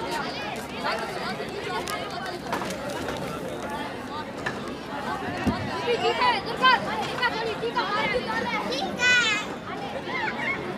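A young boy speaks clearly into a microphone.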